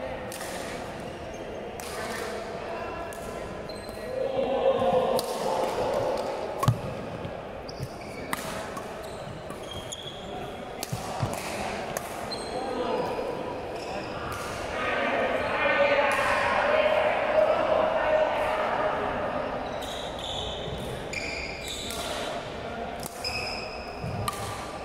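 Shuttlecocks are struck sharply with rackets in an echoing hall.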